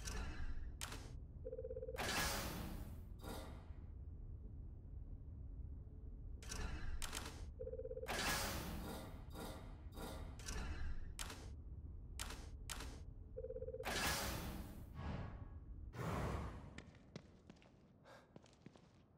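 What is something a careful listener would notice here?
Short game menu clicks and chimes sound again and again.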